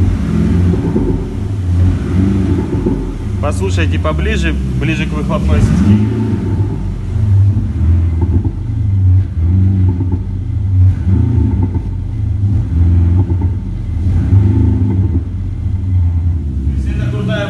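A car engine idles with a deep, throbbing exhaust rumble.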